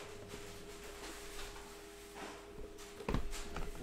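Plastic wrapping crinkles in hands.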